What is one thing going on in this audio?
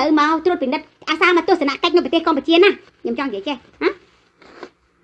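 A woman speaks tearfully, close to a microphone.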